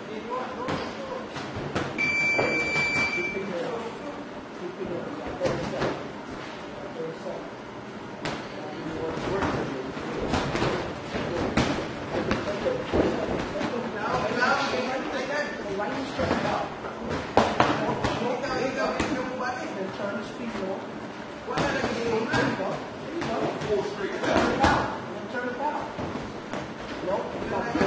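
Padded boxing gloves thud sharply in quick bursts.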